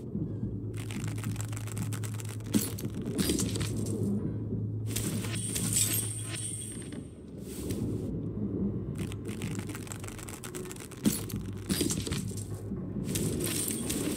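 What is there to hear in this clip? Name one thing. A wicker crate lid creaks open.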